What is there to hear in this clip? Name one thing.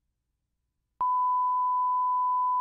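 A steady, high-pitched test tone beeps.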